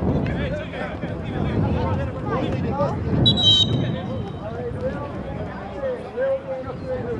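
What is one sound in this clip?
A football is kicked across a grass pitch.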